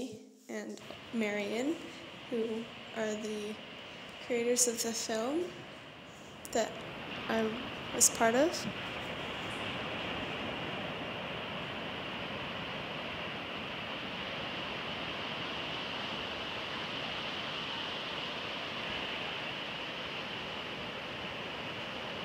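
Waves break and wash up on a shore with a steady rushing roar.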